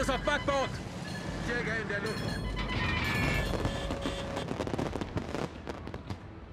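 Anti-aircraft shells burst in loud, rumbling explosions.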